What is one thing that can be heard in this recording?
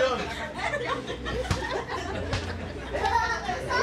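A young woman laughs loudly into a microphone.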